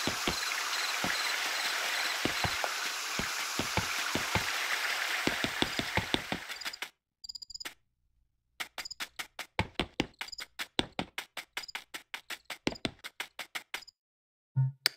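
Footsteps tap at an even pace.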